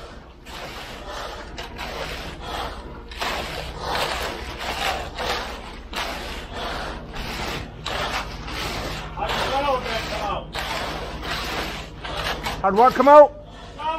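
A rake scrapes and drags through wet concrete in repeated strokes.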